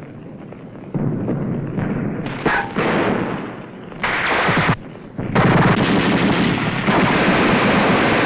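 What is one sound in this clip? A rifle fires in bursts.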